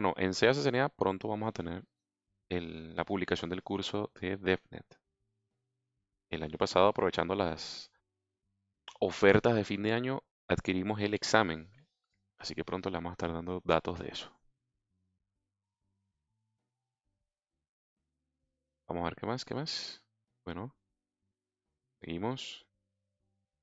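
A man speaks calmly and with animation into a headset microphone, close up.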